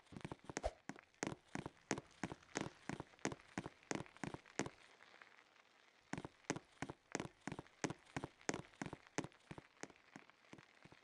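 Footsteps tap quickly and evenly across a hard floor.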